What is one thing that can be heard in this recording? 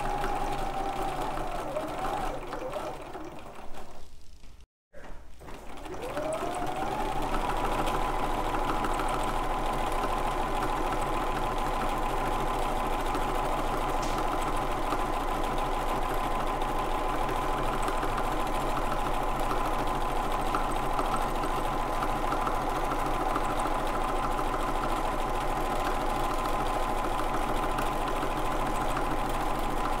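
A sewing machine stitches with a steady whirring hum, briefly stopping and then speeding up again.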